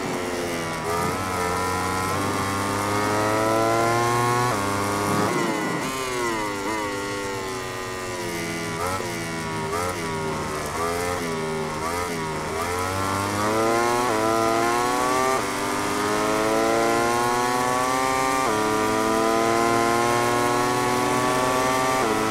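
A motorcycle engine screams at high revs, rising through the gears and dropping as it brakes.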